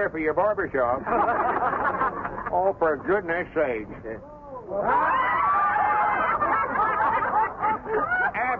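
A man speaks loudly and with animation to a crowd, heard through an old, thin-sounding recording.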